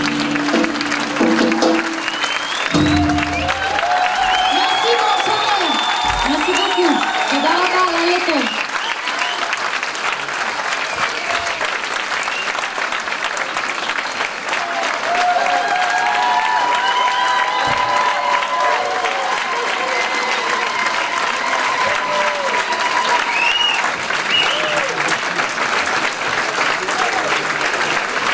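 A large crowd applauds steadily.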